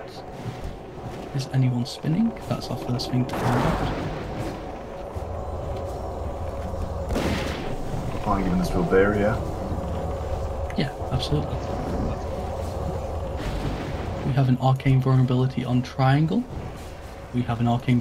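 Heavy blows clash against a large creature.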